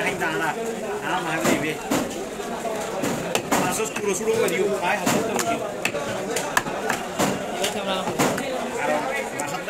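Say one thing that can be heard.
A heavy knife chops through fish onto a wooden block with sharp thuds.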